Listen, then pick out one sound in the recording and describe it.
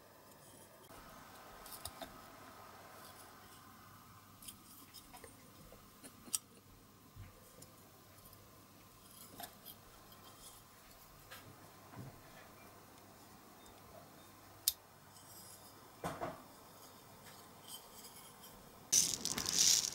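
Small metal parts click and clink as hands take them apart.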